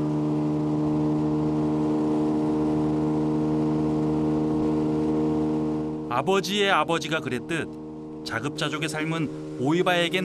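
A boat's outboard motor drones steadily.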